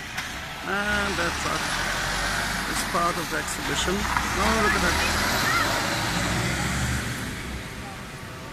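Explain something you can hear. A truck drives past close by with a deep engine rumble.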